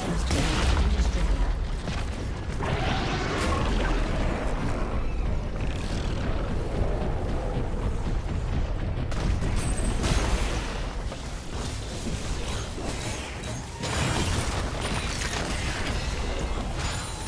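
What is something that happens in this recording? Magic spell effects whoosh and crackle in a fight.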